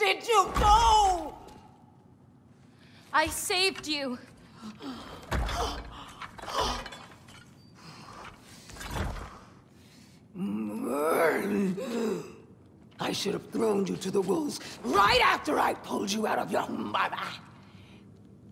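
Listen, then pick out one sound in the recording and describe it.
A man shouts angrily.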